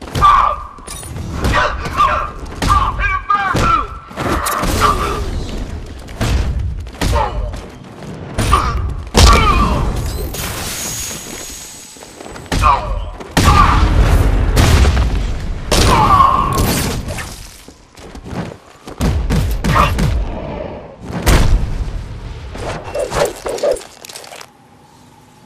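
Punches and kicks land with heavy thuds in a fast brawl.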